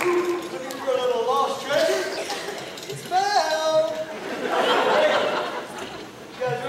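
A group of men and women sing together on a stage, heard from a distance in an echoing hall.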